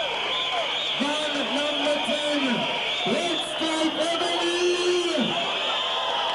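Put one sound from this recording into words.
A crowd sings along loudly.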